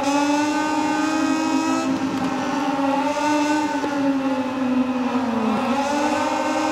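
Racing motorcycle engines whine loudly at high revs, shifting pitch as they change gear.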